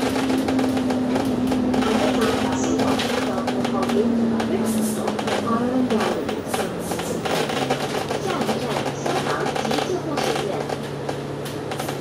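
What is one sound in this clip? The body of a bus rattles and creaks while driving.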